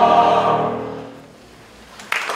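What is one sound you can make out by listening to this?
A choir of young men sings in a large echoing hall.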